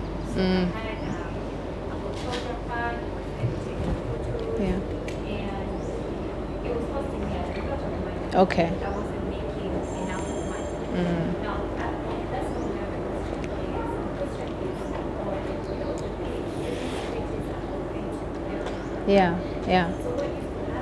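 A young woman speaks into a microphone over loudspeakers in a large echoing room.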